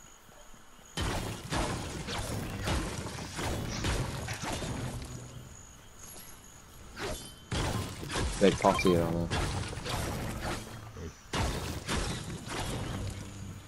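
A pickaxe strikes stone with sharp, repeated cracks.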